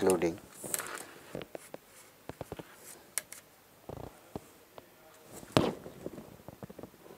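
A stiff paper pattern rustles and taps on a table.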